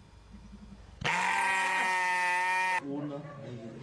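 A sheep bleats loudly and long.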